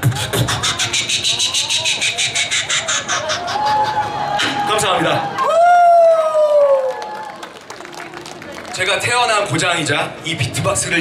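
A young man sings loudly through a microphone and loudspeakers outdoors.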